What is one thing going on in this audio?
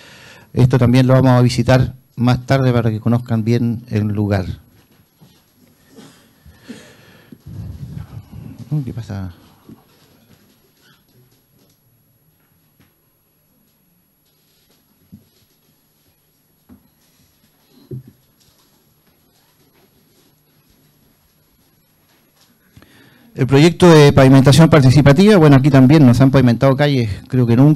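A man speaks steadily through a microphone, with long pauses.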